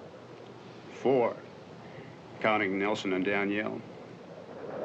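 A second man answers in a low, steady voice, close by.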